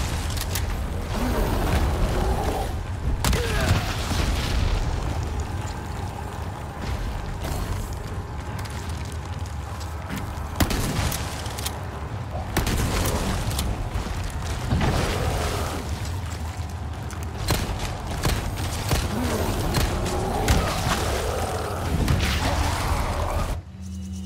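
A monster growls and roars loudly.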